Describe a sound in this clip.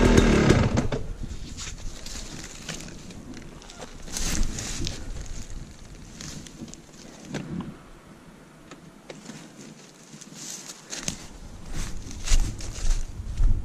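Dry leaves and brush crunch and rustle as a motorbike is moved.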